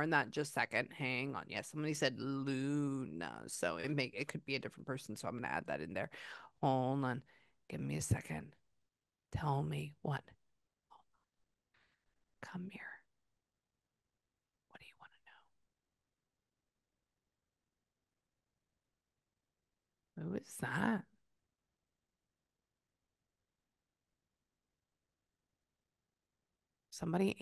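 A young woman speaks softly and closely into a microphone, in pauses.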